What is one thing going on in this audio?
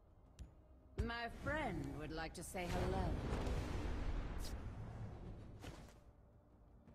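A magical burst and shimmering whoosh sound as a card is played.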